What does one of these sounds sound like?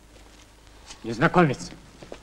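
A man cries out loudly and in a drawn-out voice, close by.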